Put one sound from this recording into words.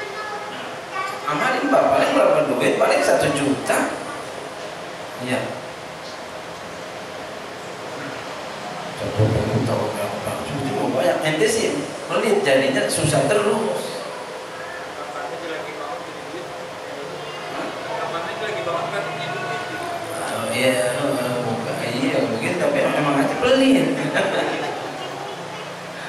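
A middle-aged man speaks with animation into a microphone, heard through a loudspeaker in an echoing room.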